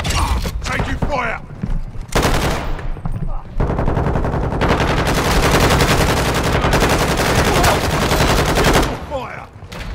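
Shotgun blasts boom loudly in a room.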